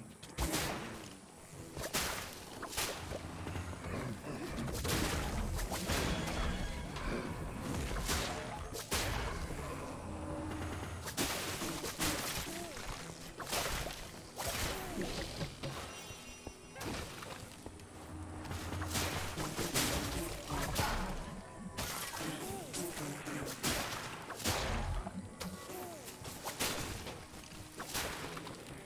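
Game weapons strike enemies with sharp hits and swooshes.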